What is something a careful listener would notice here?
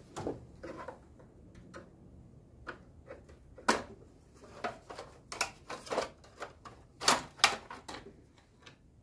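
Plastic engine parts click and knock as they are handled.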